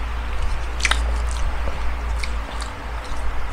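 A young man chews food with wet mouth sounds close to a microphone.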